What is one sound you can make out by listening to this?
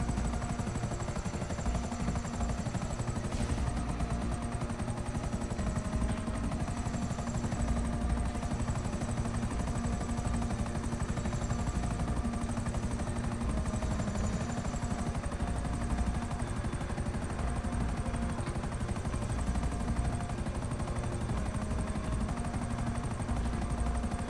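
A helicopter engine whines and its rotor thumps steadily.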